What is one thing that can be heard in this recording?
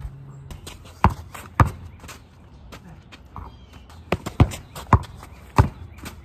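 A basketball bounces on packed dirt outdoors.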